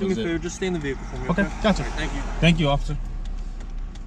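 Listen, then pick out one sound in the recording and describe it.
A man speaks calmly from just outside a car window.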